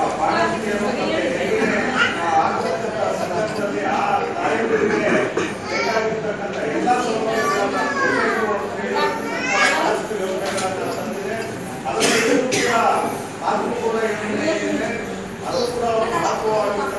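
A middle-aged man speaks with animation to an audience through a microphone, in a room with some echo.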